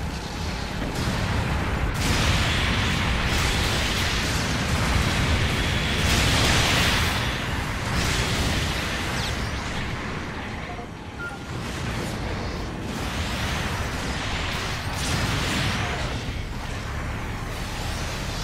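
Mecha thrusters roar steadily.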